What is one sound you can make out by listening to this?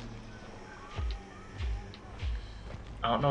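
Footsteps tread through dry grass.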